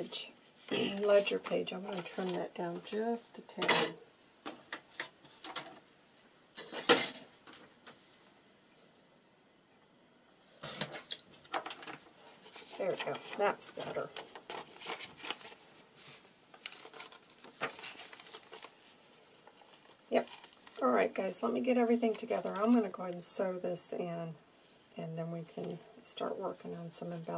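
Paper rustles and crinkles as pages are handled.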